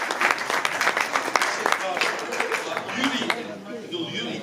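An audience claps in a large hall.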